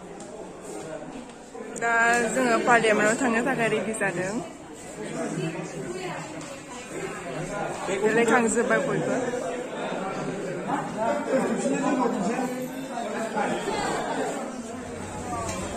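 Young men talk and chatter in a group indoors.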